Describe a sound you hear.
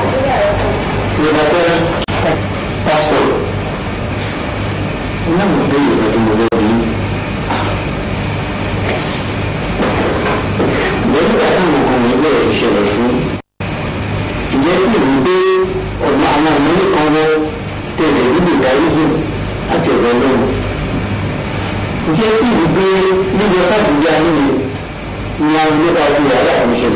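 A man speaks with emotion, his voice breaking as if crying.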